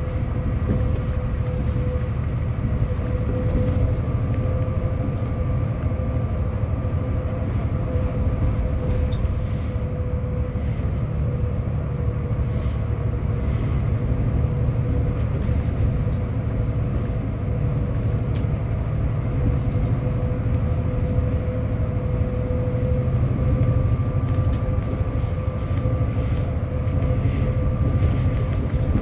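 A bus engine hums steadily from inside the moving bus.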